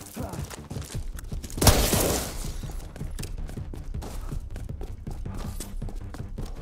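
A gun fires in quick bursts.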